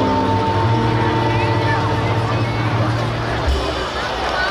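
Saxophones play a melody together over a live band.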